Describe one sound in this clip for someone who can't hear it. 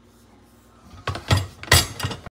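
Kitchen utensils clatter against each other as they drop into a ceramic jar.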